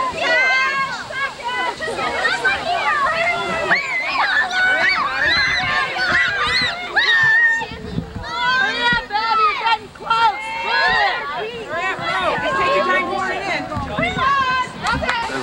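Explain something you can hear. Many children shout and squeal excitedly close by, outdoors.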